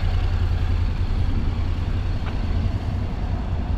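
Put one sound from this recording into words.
A motorcycle engine hums as it rolls past close by.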